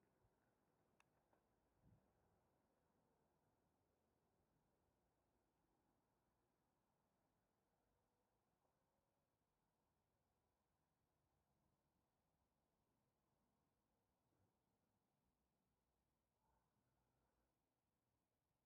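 Bicycle tyres rumble steadily over cobblestones.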